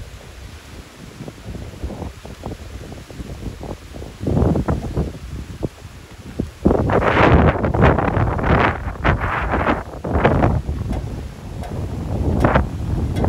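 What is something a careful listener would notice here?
Strong wind gusts roar outdoors.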